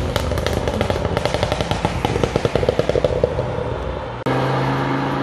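A sports car engine crackles and pops as it pulls away.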